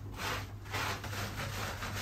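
Water splashes against a tub.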